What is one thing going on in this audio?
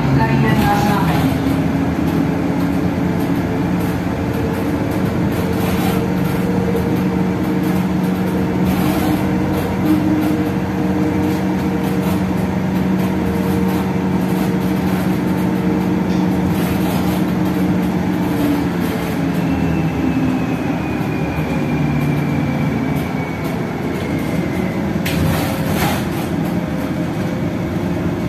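A city bus engine hums and whines from inside the cabin as the bus drives along.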